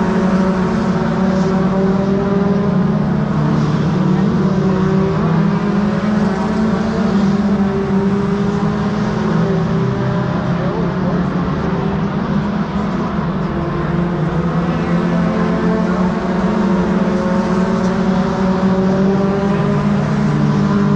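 A race car engine idles loudly and steadily close by, with a low rumble.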